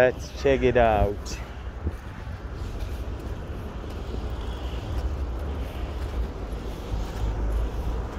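Footsteps walk slowly over paving stones outdoors.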